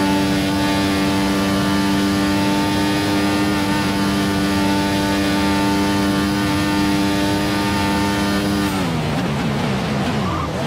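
A racing car engine screams at a steady high pitch, then drops and gurgles as the car brakes and shifts down.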